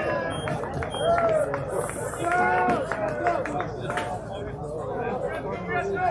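Young men shout and chant encouragement from across a ball field outdoors.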